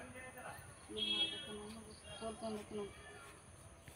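A woman speaks nearby in a calm voice.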